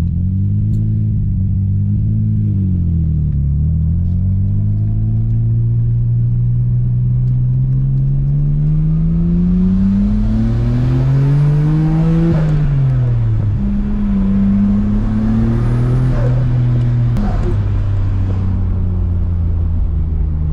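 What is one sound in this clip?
A car engine hums loudly from inside the car, rising and falling in pitch as it revs through the gears.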